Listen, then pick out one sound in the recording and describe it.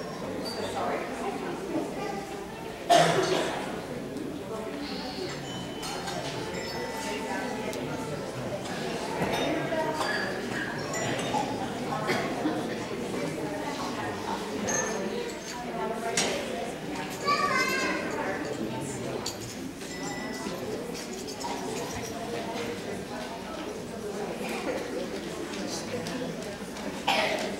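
A crowd of children and adults chatter and murmur in a large echoing hall.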